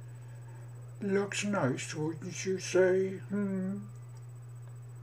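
A man speaks softly and close by, in a low breathy voice.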